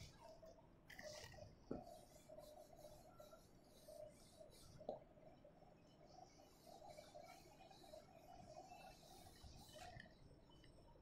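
A board eraser rubs softly against a whiteboard.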